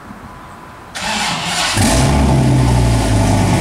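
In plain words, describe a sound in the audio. A pickup truck engine starts with a roar.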